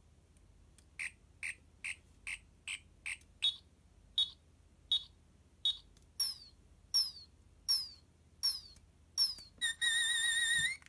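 A toy gadget gives short electronic beeps and chirps in quick succession.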